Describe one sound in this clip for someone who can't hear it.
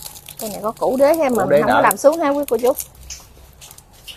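Plastic bags rustle as hands fold them.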